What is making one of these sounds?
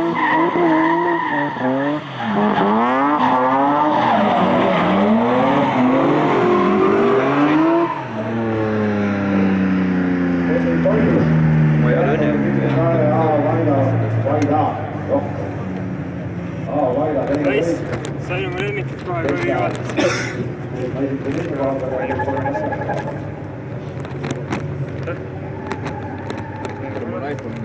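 Tyres screech on asphalt.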